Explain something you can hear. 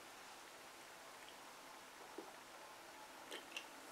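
A man gulps a drink from a plastic bottle.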